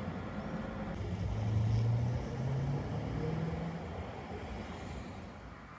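A tram hums faintly in the distance.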